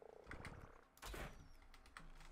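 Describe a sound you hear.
A crossbow fires a bolt with a sharp snap.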